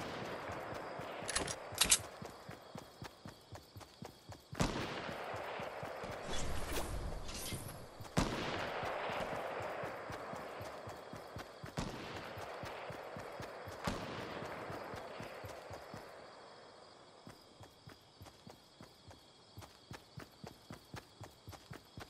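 Footsteps patter quickly on grass in a game.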